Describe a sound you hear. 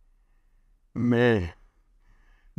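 An older man laughs briefly.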